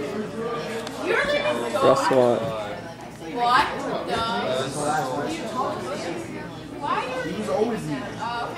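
Several young people chat and laugh.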